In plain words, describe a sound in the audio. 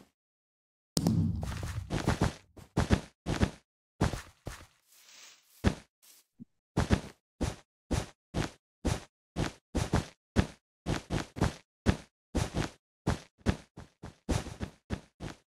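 Blocks are placed one after another with quick, even clicking thuds.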